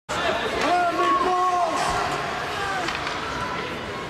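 Hockey skates scrape on ice.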